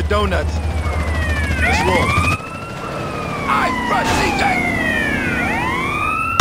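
A police siren wails and sweeps up and down.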